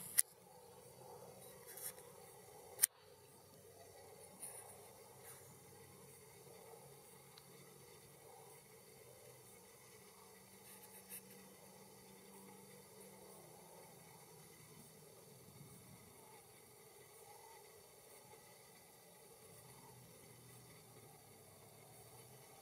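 A flock of cranes calls faintly from high overhead.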